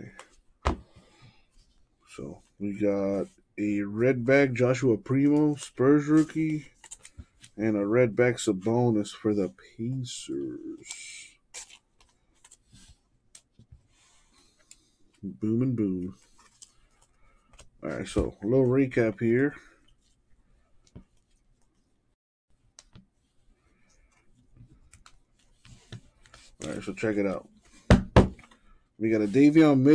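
Trading cards slide and rustle as hands shuffle through them.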